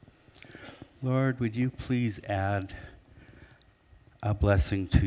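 A middle-aged man speaks with animation into a microphone in an echoing hall.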